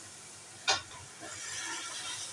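Liquid pours into a sizzling pot.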